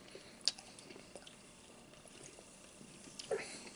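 A man gulps a drink from a can.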